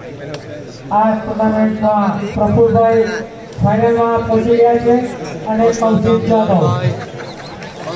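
A group of young men cheer and shout together nearby.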